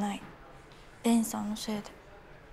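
A young man speaks briefly.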